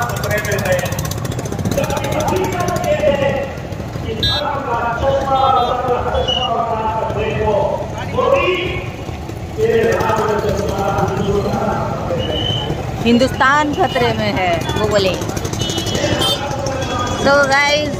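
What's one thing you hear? Several men talk loudly nearby.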